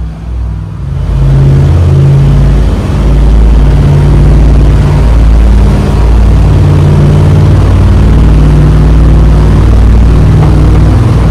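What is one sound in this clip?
Wind blows past a moving boat.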